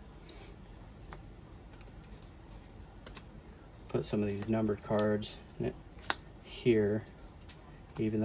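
Trading cards slap softly onto a table.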